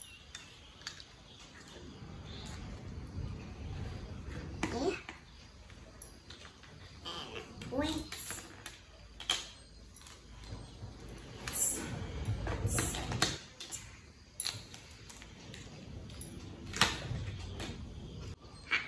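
Plastic toy cups and dishes clink and clatter.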